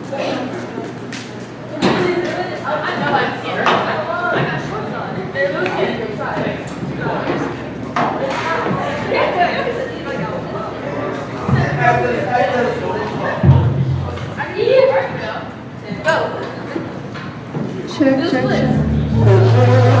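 Several young people talk and laugh in an echoing hall.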